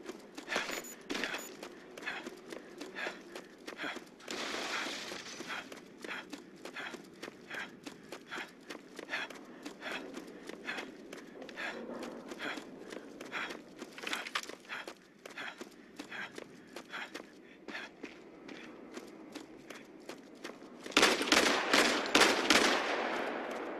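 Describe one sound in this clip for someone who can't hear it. Gunshots crack in a video game firefight.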